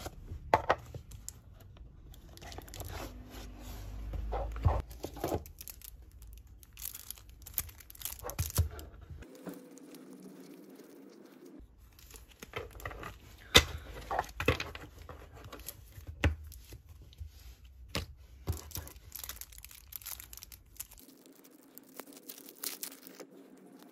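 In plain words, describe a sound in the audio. Cards rustle and tap as hands handle and shuffle them.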